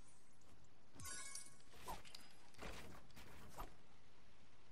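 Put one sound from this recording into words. A pickaxe chops repeatedly into wood.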